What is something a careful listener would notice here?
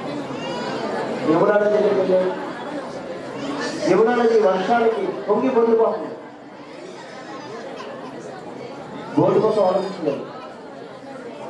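A man speaks with animation through a microphone, heard over a loudspeaker.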